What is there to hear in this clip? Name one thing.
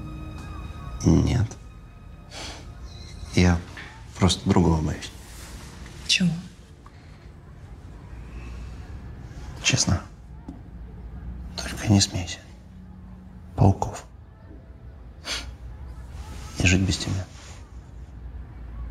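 A man speaks quietly and closely.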